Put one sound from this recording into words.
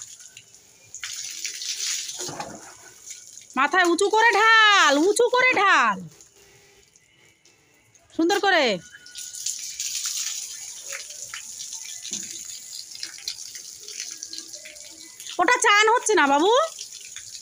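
Water pours from a bucket and splashes onto a hard floor.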